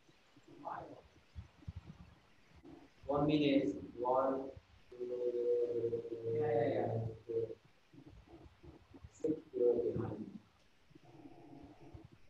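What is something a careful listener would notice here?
A young man speaks clearly and slowly, as if teaching.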